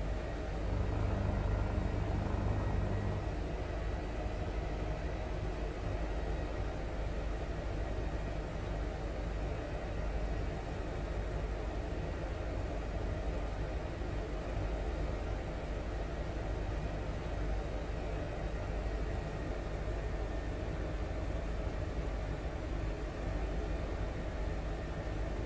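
A helicopter engine and rotor roar steadily from inside the cabin.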